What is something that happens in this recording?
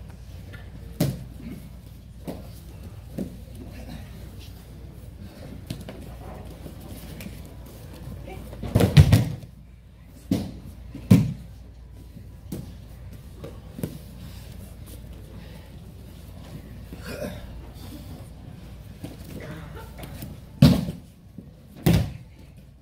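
Bodies thud heavily onto a mat.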